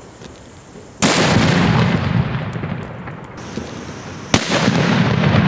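A smoke firework goes off with a loud bang.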